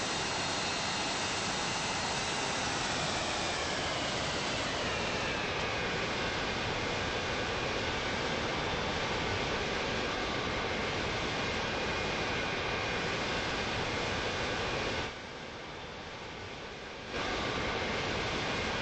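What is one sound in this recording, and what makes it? Jet engines roar and whine steadily.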